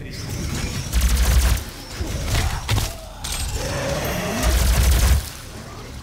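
A heavy gun fires loud blasts.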